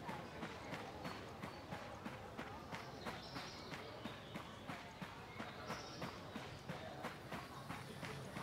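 Footsteps crunch steadily through undergrowth.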